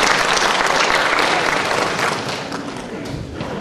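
An audience applauds loudly in a large hall, then the applause dies away.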